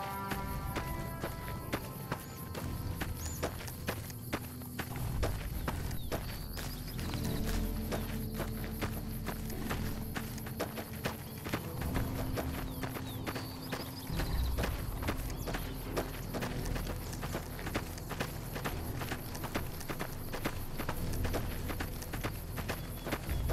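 Footsteps crunch steadily on loose gravel.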